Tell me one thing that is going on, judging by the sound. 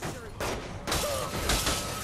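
A car hits a person with a thud.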